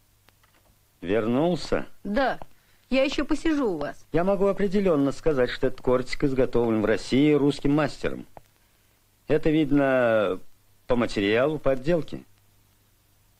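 An elderly man speaks calmly and slowly.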